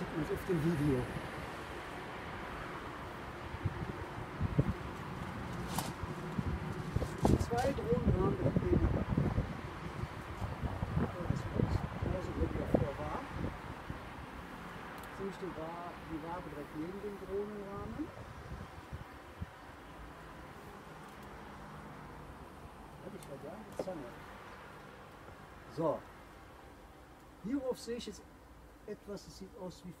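Bees buzz steadily around an open hive.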